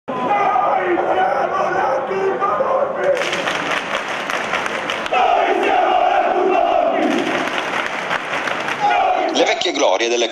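A large crowd of fans chants and cheers loudly outdoors.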